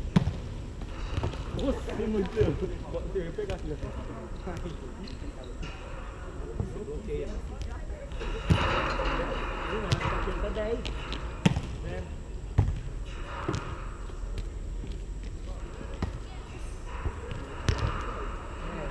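Young men shout and call out during play, echoing in a walled court.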